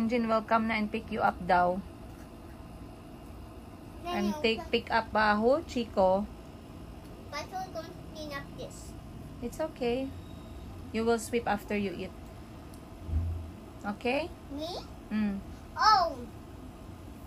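A young child speaks in a high, chattering voice close by.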